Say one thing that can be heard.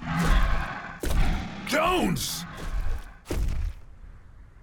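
A man speaks loudly nearby.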